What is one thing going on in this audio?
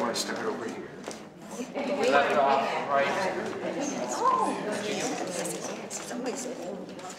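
Several elderly men and women chatter in the background.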